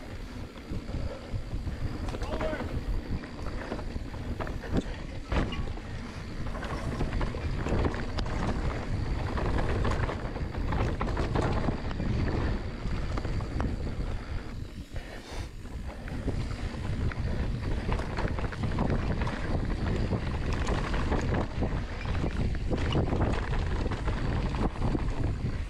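Bicycle tyres roll fast over a dirt trail.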